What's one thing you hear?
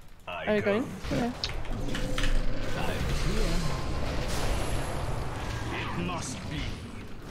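Fiery blasts crackle and rumble.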